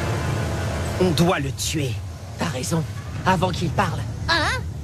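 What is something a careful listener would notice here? A young boy speaks tensely, close up.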